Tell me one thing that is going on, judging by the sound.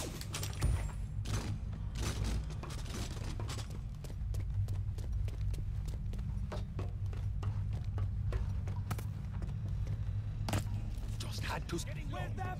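Footsteps run on hard ground and metal.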